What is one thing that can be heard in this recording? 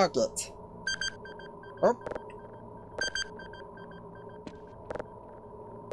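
An electronic machine beeps in a short repeating pattern.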